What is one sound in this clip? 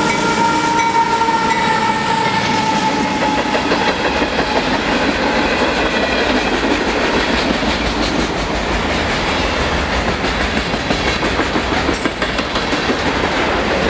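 Freight car wheels clatter and squeal on the rails.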